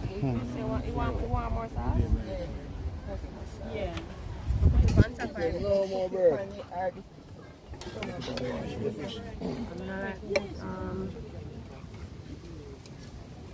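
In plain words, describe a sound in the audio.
Women talk and chat nearby outdoors.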